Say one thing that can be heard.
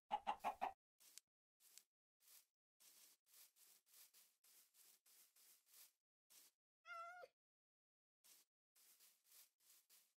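Footsteps crunch softly over grass at a steady walking pace.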